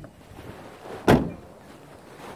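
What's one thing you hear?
A car door slams shut nearby.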